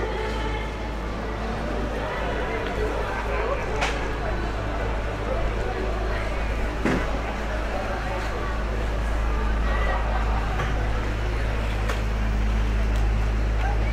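A street murmurs with distant voices and passers-by.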